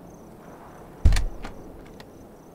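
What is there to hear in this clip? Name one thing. A wooden door bangs open.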